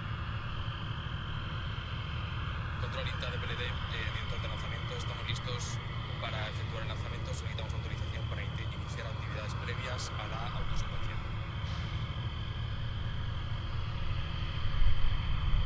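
Gas hisses steadily as a rocket vents on the launch pad.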